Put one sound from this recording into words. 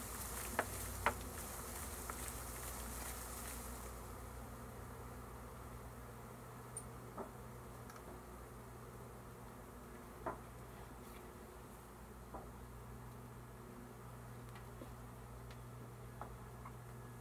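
Wooden hive frames knock and clatter.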